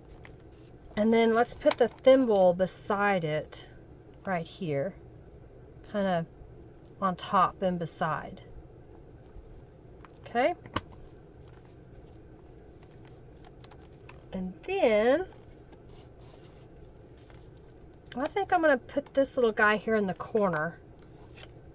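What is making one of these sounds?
A woman talks calmly into a microphone, in short bursts with pauses.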